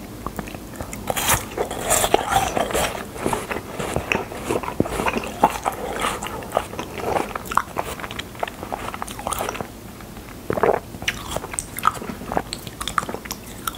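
A young man bites and slurps an ice pop.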